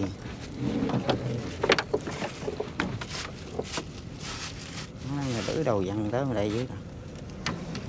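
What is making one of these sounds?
Water drips and splashes from a fishing net into a river.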